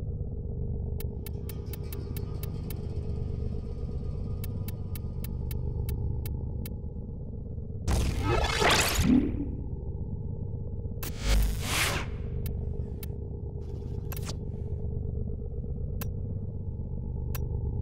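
Soft interface clicks tick in quick succession.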